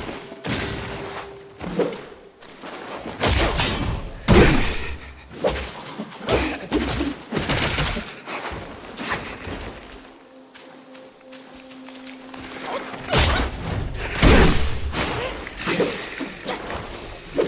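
A staff whooshes and strikes in a fight.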